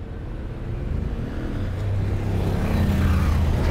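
A motorcycle engine runs close by.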